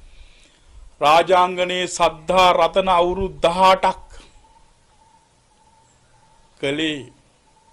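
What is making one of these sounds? A middle-aged man sings in a steady, drawn-out chant close to the microphone.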